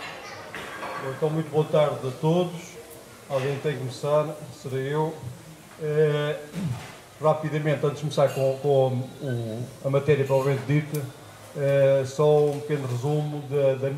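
A middle-aged man speaks calmly into a microphone, heard through a loudspeaker in a room.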